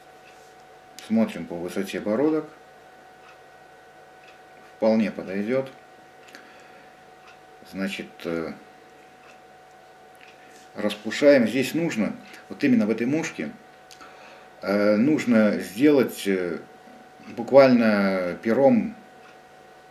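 A man speaks calmly close by, in short phrases with pauses.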